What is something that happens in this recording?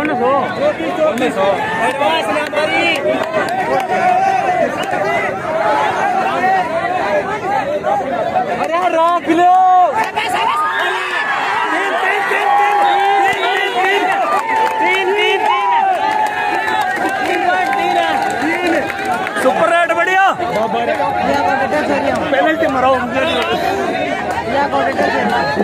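A large crowd outdoors shouts and cheers loudly.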